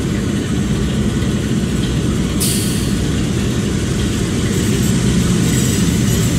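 Diesel locomotive engines rumble and throb steadily close by.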